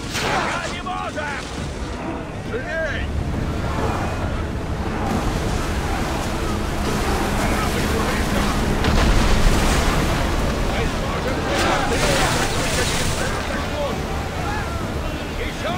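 Waves crash and splash against ship hulls.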